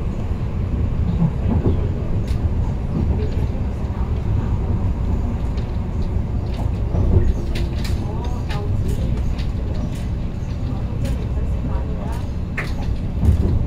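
A train rumbles steadily along the tracks.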